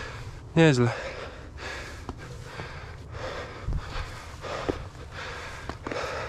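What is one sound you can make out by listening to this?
Boots scrape and crunch on rock and loose stones.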